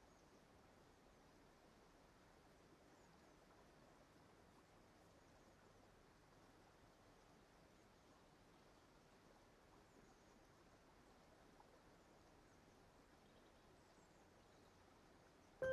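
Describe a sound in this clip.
Wind rustles softly through tall dry grass.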